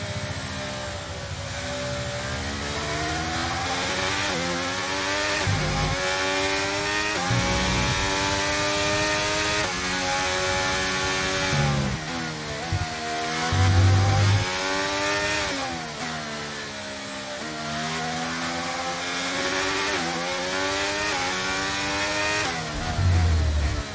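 A Formula One car's V6 turbo engine revs high and shifts up and down through the gears.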